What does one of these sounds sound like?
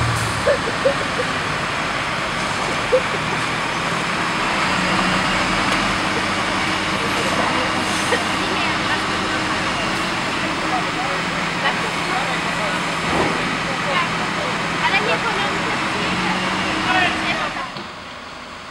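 A fire engine's diesel motor rumbles steadily close by.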